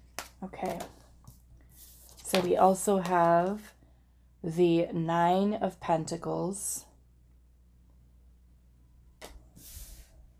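A card is set down with a soft tap on a table.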